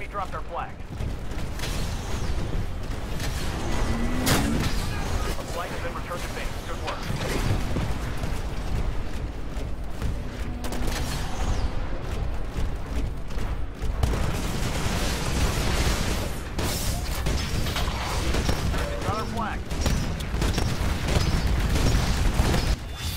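A heavy machine rumbles and stomps steadily.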